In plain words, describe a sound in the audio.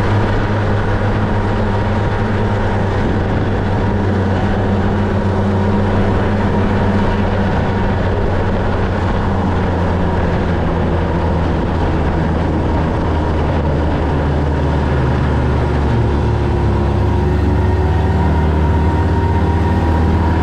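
A snowmobile engine drones steadily up close.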